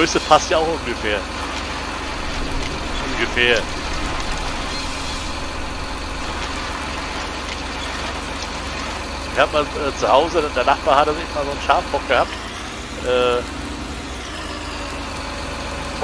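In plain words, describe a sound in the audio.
A heavy machine's engine hums steadily.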